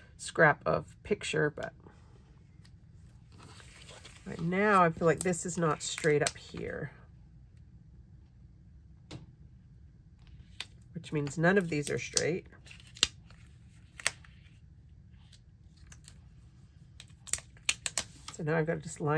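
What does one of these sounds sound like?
Paper rustles and crinkles softly.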